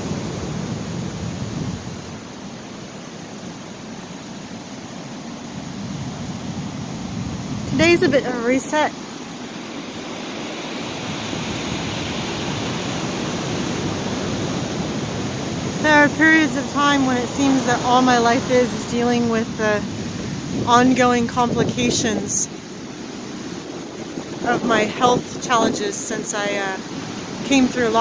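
Ocean surf breaks and rumbles offshore.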